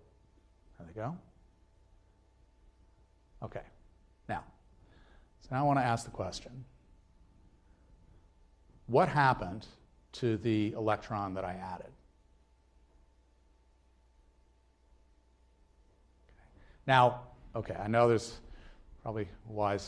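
An elderly man lectures through a microphone in a large hall, speaking in bursts with pauses.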